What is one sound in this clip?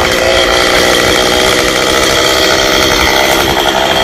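A chainsaw buzzes loudly, cutting into wood.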